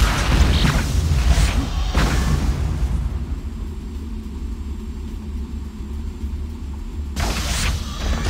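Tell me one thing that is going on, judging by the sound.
A hoverboard hums as it glides along.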